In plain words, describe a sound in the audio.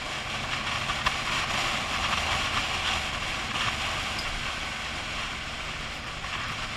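Wind rushes loudly past a microphone on a moving motorcycle.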